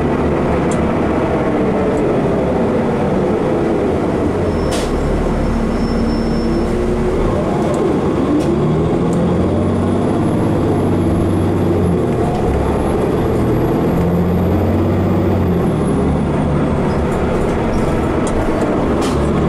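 A bus engine hums and whines as the bus drives along.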